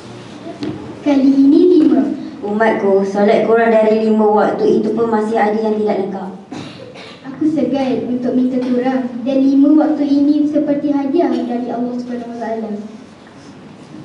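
A boy speaks into a microphone.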